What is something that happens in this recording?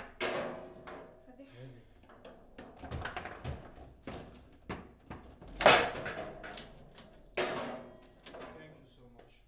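Foosball rods spin and the ball clacks sharply against plastic players and the table walls.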